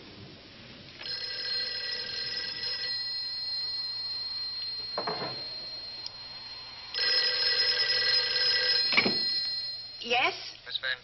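A telephone rings loudly.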